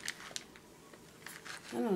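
A woman sniffs at something held to her nose.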